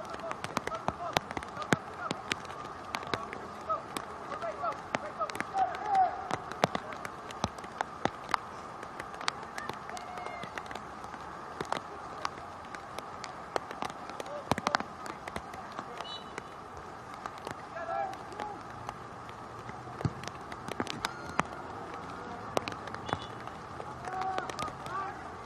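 Young players call out faintly across an open field.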